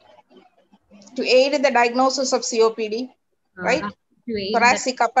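A middle-aged woman speaks with animation over an online call.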